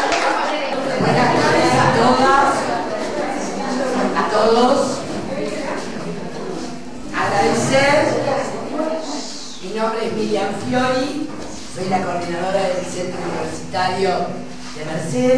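An elderly woman speaks calmly into a microphone through a loudspeaker.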